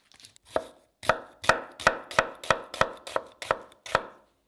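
A knife chops an onion on a cutting board in quick, even strokes.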